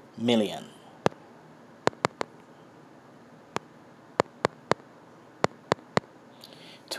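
Phone keypad taps click one after another.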